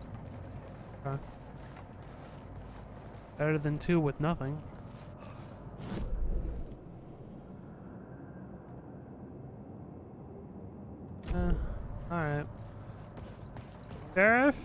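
Footsteps crunch on debris in a hollow, echoing tunnel.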